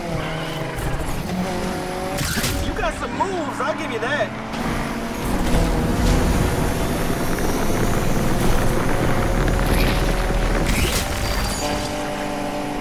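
A car engine roars and revs as it accelerates hard.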